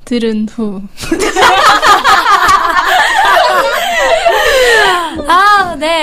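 Several young women laugh loudly together.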